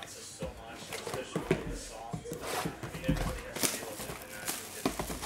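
Plastic wrap crinkles as it is torn open.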